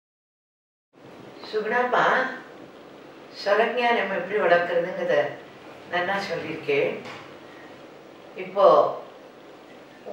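An elderly woman speaks calmly into a microphone.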